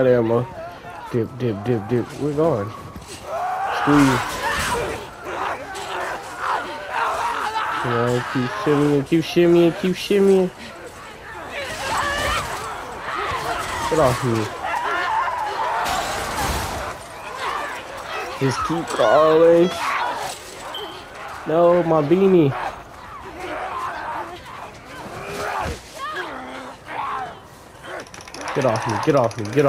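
A young man grunts and gasps with effort close by.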